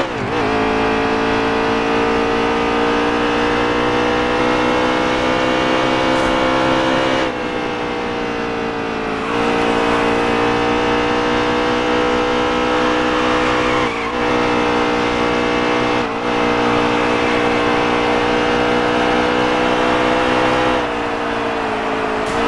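A stock car's V8 engine roars at high revs.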